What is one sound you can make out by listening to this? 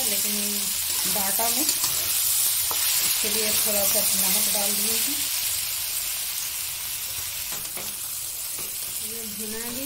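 A metal spatula scrapes and clicks against a wok.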